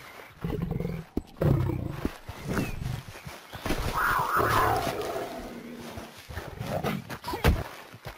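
A lion growls.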